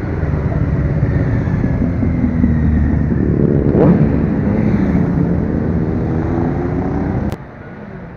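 Motorcycle engines rumble and roar as a group of bikes rides past close by.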